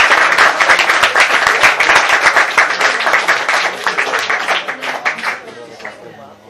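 A man plays a harmonica into a microphone.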